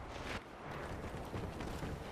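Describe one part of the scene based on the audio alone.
Boots run on a metal floor.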